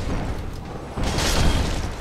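A metal blade clangs against a shield.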